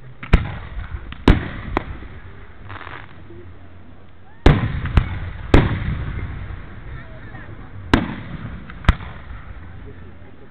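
Fireworks crackle and fizz after bursting.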